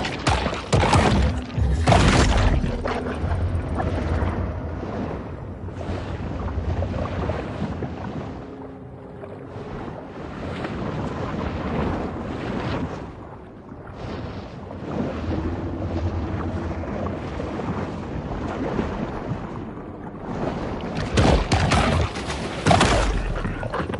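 Water swirls and bubbles with a low underwater rumble.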